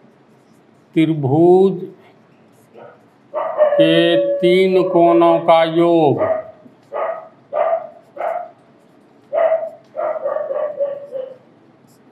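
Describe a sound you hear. An elderly man speaks calmly and clearly, explaining in a drawn-out, sing-song voice, close by.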